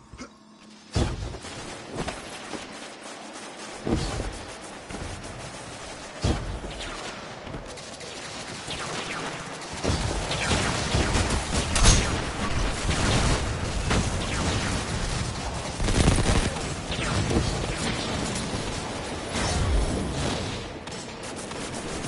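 Gunfire and blasts ring out in a game.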